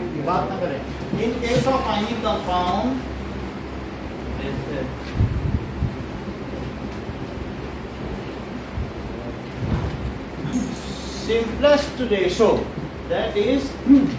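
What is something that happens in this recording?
A man speaks calmly, as if explaining.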